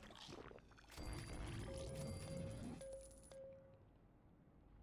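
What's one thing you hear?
Bright game chimes ring out as rewards are collected.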